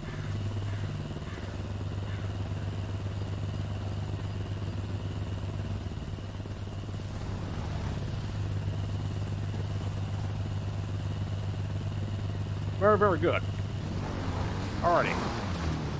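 A motorcycle engine runs steadily nearby.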